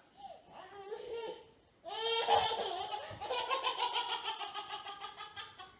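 A baby squeals and babbles close by.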